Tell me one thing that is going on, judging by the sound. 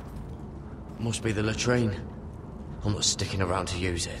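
A young man speaks in a low, calm voice.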